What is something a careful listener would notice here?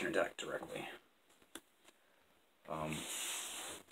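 Playing cards slide and rustle as a hand gathers them up.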